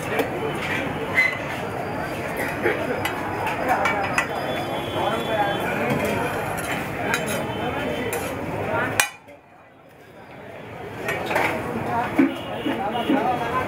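Oil sizzles and spits on a hot griddle.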